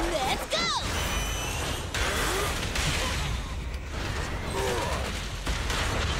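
Energy blasts roar and crackle loudly.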